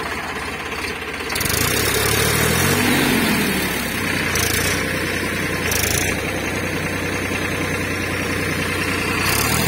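A diesel tractor engine runs close by.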